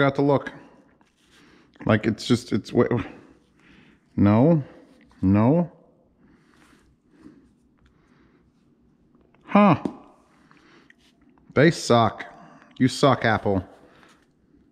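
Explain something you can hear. Headphones are handled with soft clicks and rustles.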